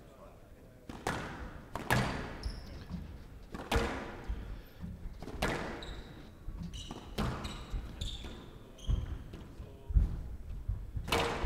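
A squash ball is struck hard by rackets and smacks against the walls with sharp, echoing thwacks.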